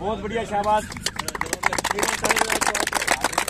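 A group of young men clap their hands rapidly.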